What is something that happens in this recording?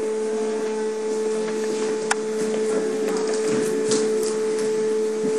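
A fax machine hums and whirs steadily as it feeds out a printed page.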